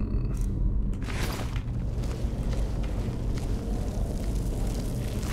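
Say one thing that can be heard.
Magic flames crackle and hiss.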